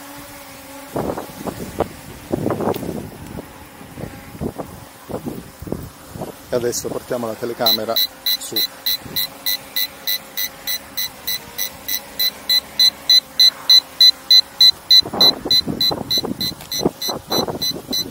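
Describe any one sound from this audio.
A man speaks outdoors, close by.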